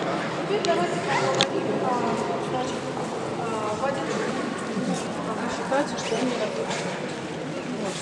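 Elderly women chat quietly nearby.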